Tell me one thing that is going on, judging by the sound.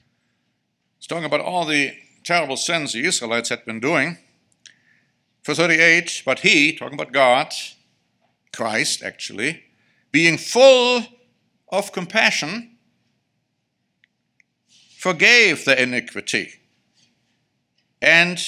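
A middle-aged man speaks calmly and deliberately into a microphone, with pauses between phrases.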